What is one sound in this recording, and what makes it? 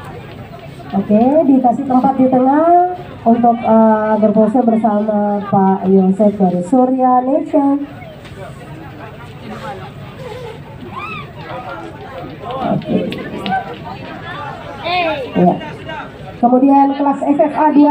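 A man speaks loudly through a loudspeaker, with echo outdoors.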